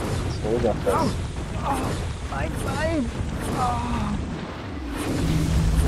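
Magic blasts burst and crackle.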